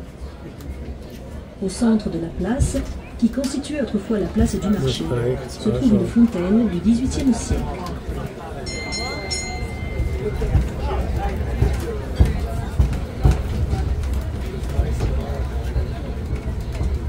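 A crowd of men and women chatter at tables outdoors.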